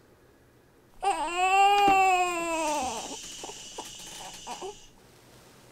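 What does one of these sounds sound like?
A newborn baby cries loudly.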